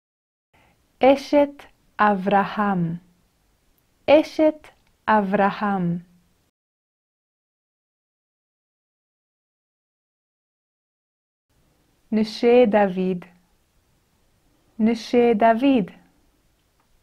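A young woman speaks clearly and cheerfully into a close microphone.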